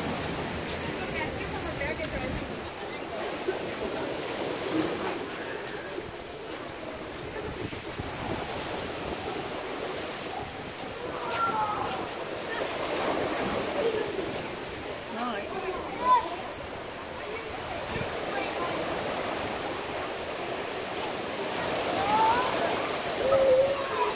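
Waves wash onto a beach with a steady rush.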